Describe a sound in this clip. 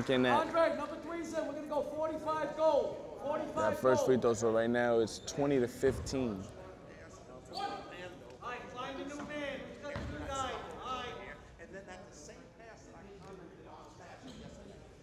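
A man talks loudly and with animation nearby in an echoing hall.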